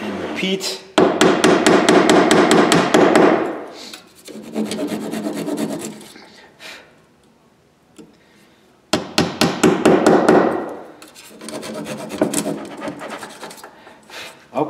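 A metal tool scratches and scrapes across a thin metal plate.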